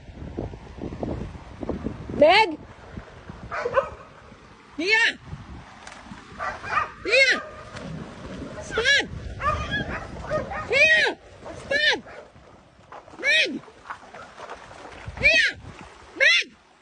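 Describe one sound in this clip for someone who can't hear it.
Water splashes as animals wade and scuffle in a stream.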